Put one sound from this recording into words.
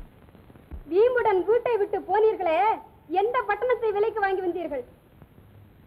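A woman speaks with agitation, close by.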